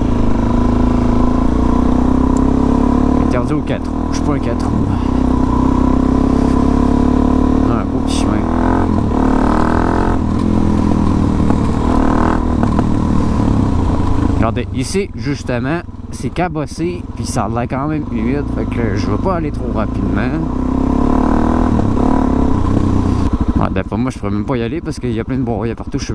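A motorcycle engine drones close by, rising and falling in pitch as it revs.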